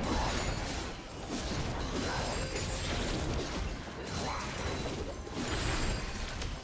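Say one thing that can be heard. Game combat effects clash and whoosh in quick bursts.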